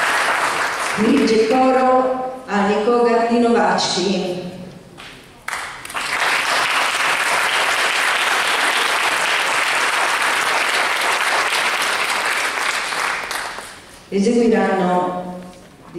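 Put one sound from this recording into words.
A mixed choir sings together in a large echoing hall.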